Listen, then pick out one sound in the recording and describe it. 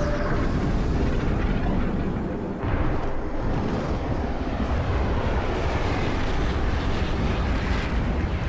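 A deep, loud rumbling roar of blasts and energy beams goes on throughout.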